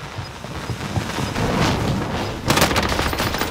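An explosion bursts with a loud crackle of sparks.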